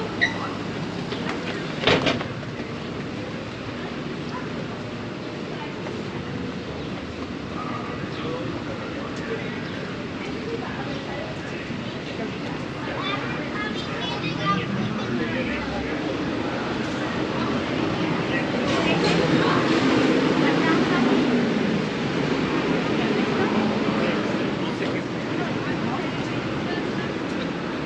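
Footsteps tap on a brick sidewalk.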